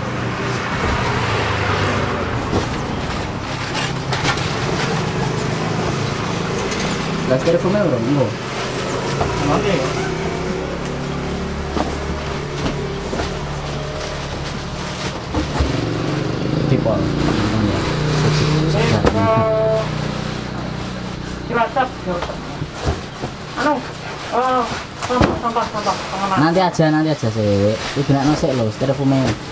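Cardboard boxes scrape and thump as they are lifted and moved.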